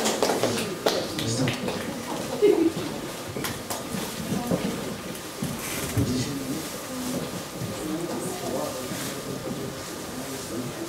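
Adults and children murmur and chat quietly nearby.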